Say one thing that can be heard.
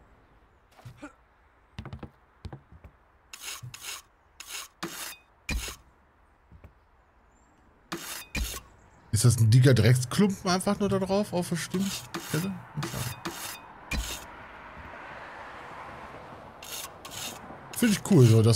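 A trowel taps and scrapes on bricks.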